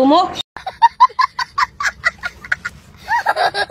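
A little boy laughs loudly close by.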